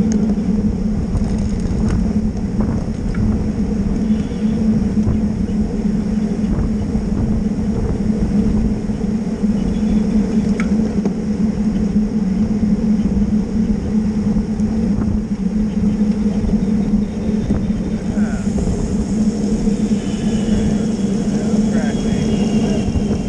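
Wind rumbles loudly across a moving bicycle.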